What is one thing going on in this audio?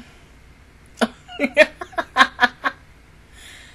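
A young woman laughs close to a microphone.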